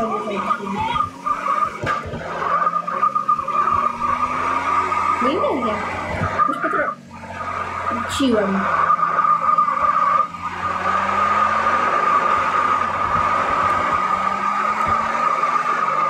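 Tyres screech on the road as a car skids and drifts.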